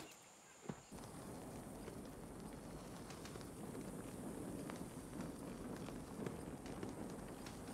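A game menu clicks as items are moved.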